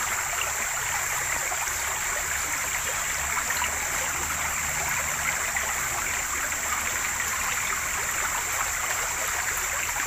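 Water splashes as food is rinsed by hand.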